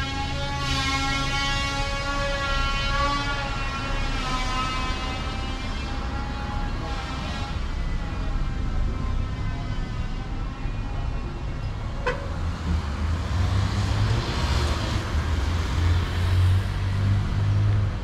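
Traffic hums steadily nearby along a street outdoors.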